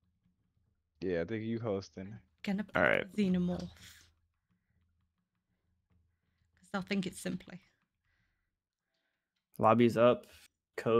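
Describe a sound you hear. A woman talks with animation into a close microphone, in short bursts.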